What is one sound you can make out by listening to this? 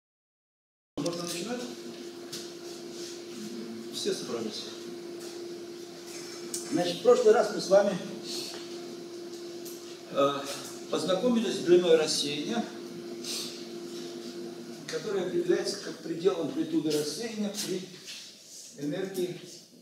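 An elderly man lectures calmly in an echoing room.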